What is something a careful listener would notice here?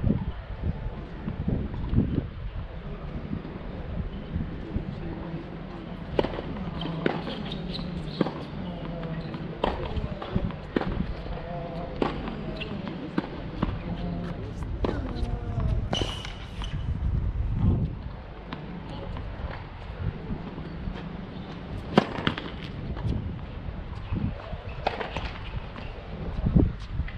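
Tennis balls are struck with rackets in a steady rally, each hit a sharp pop.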